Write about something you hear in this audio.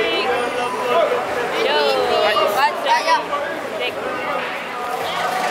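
Young boys cheer and shout excitedly close by.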